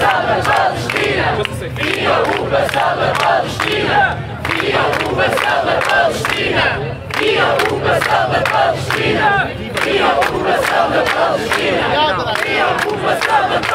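People in a crowd clap their hands.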